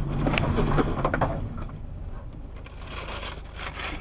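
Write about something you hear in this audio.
A scooter crashes onto the road with a scrape.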